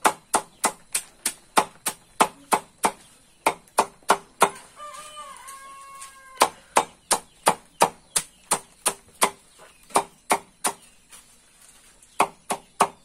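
A machete chops rapidly into leaves on a wooden block with sharp, even thuds.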